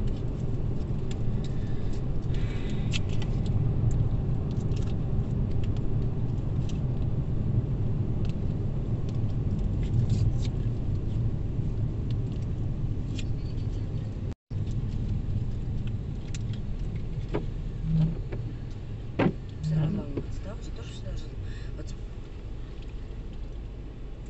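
Small objects click and rattle as passengers handle them.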